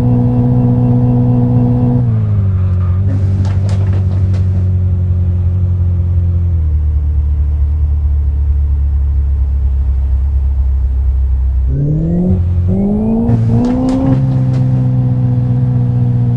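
A car engine hums, slowing down and then revving up again.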